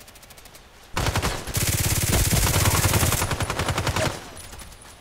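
A pistol fires a rapid burst.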